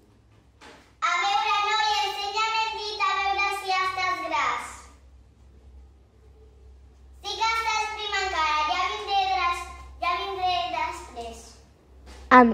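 A young girl speaks in a high, clear voice.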